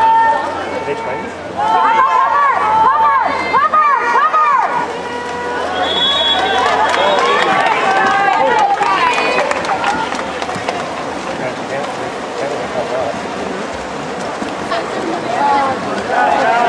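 A crowd of spectators shouts and cheers nearby, outdoors.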